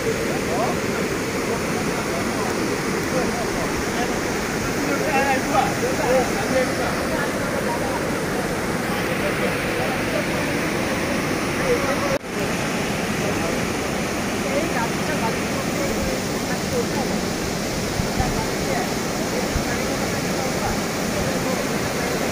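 Floodwater rushes and roars loudly over a broken embankment.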